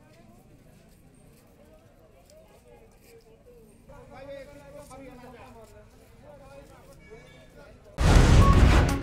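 A crowd of men and women talks and murmurs outdoors.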